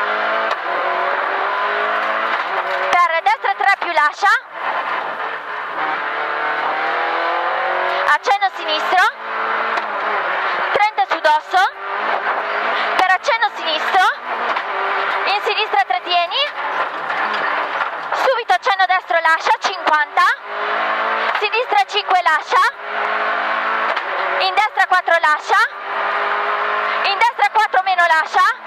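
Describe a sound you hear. A rally car engine roars loudly, revving up and down.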